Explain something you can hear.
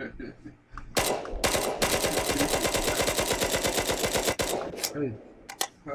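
Rapid automatic gunfire rattles in a long burst.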